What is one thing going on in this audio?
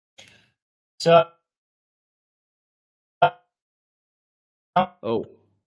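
A second man speaks in short bursts over an online call.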